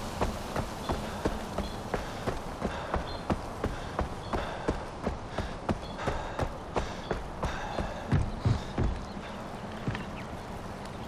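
Footsteps crunch steadily on dirt and then thud on wooden boards.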